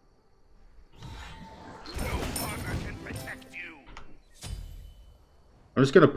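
Magic spell effects whoosh and crackle.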